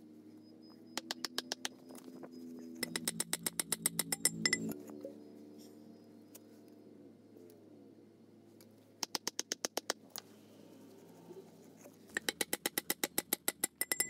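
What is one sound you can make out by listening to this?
A hammer taps rapidly on a metal pipe in short bursts.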